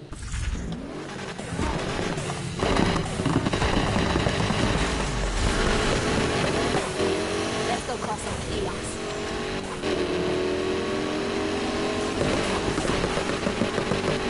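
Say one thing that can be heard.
Powerful car engines rev and roar.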